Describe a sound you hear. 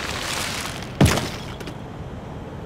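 Plastic pieces burst apart with a sudden pop.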